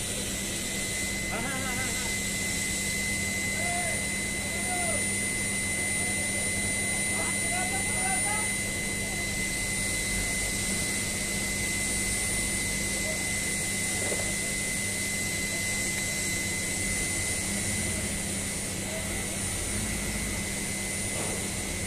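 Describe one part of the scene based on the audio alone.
Heavy machinery hums and whines steadily.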